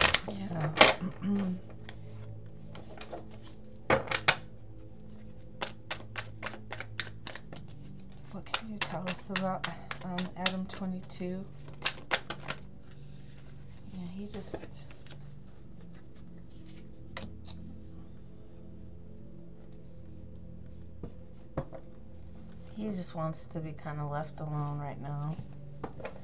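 Playing cards riffle and slap together as they are shuffled.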